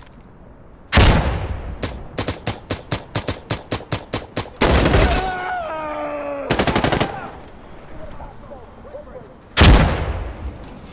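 Gunshots crack in rapid bursts, close by.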